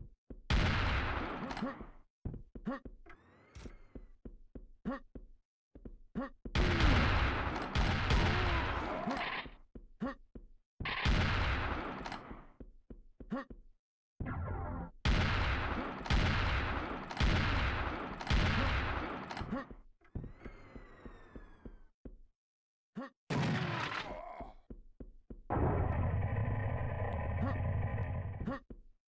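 Heavy gunshots boom and echo again and again.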